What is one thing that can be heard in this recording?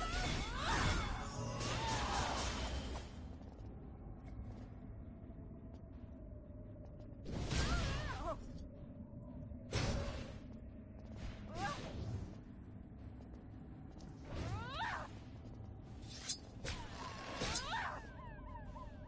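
Magic attacks whoosh and burst in short loud bursts.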